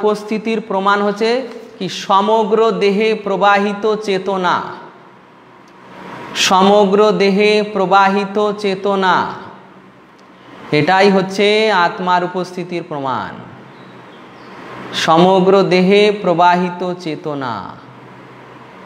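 A man sings a slow chant in phrases, close to a microphone.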